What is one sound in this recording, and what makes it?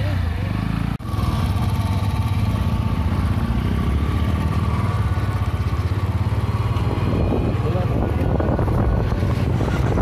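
A motorcycle engine drones steadily while riding along.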